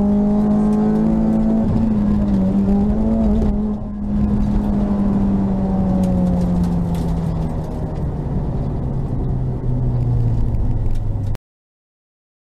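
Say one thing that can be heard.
A car engine roars loudly from inside the car, rising and falling in pitch as it shifts gears.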